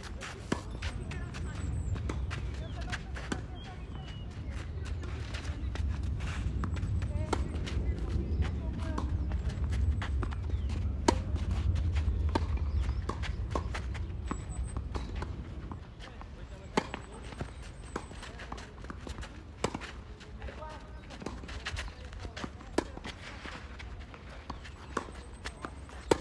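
A tennis ball is struck with a racket, back and forth.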